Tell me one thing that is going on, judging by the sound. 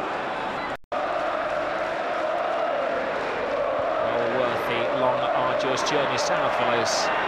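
A crowd of men chants and claps in rhythm.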